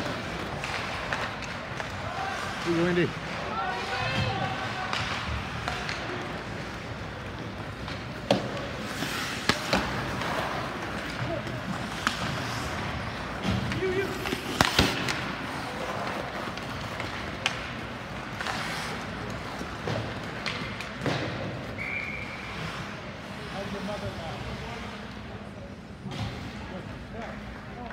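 Ice skates scrape and carve across the ice.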